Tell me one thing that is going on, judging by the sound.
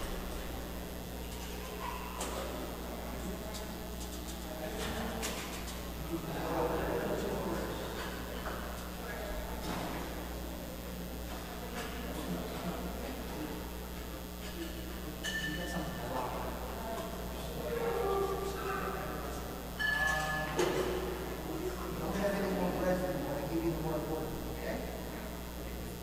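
Men and women talk quietly in a large echoing hall.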